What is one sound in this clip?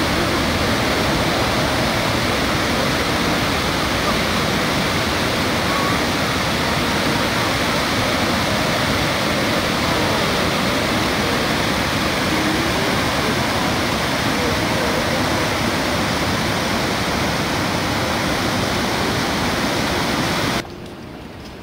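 Water rushes loudly and steadily over a weir.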